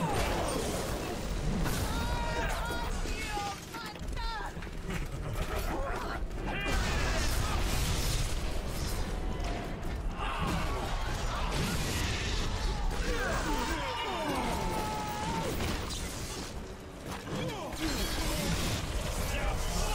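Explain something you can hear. Fire bursts and explosions roar.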